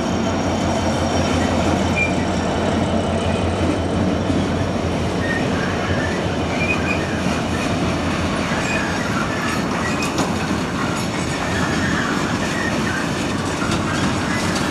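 A long freight train rumbles and clatters steadily past on the rails.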